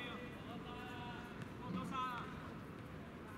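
Young men shout to each other outdoors across an open pitch.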